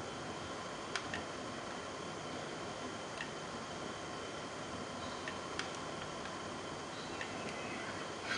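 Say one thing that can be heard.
Glass lab equipment clicks faintly as it is handled.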